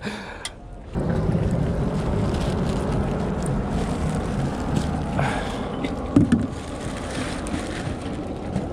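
Plastic packaging crinkles and rustles as hands handle it.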